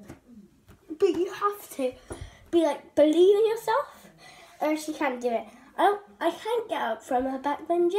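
A young girl sings loudly and with animation close by.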